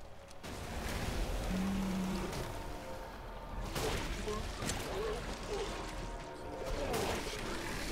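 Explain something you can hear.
Gunshots ring out from a game.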